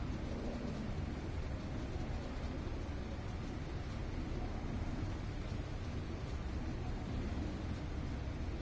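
Sparks fizz and crackle.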